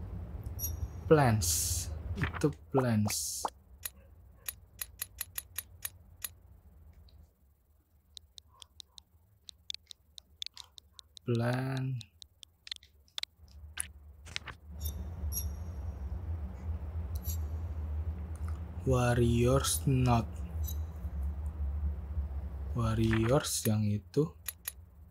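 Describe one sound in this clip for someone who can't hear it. A man talks briefly into a close microphone.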